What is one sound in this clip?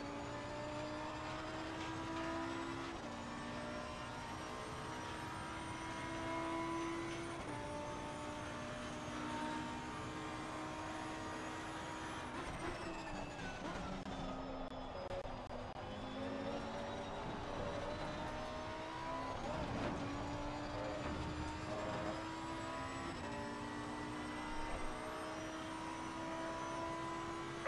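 A racing car engine roars at high revs, rising in pitch through each gear and dropping with each gear change.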